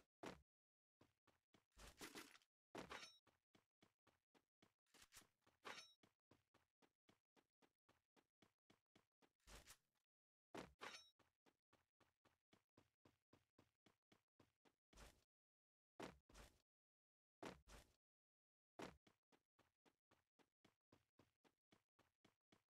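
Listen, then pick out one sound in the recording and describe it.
Footsteps crunch quickly over grass as a game character runs.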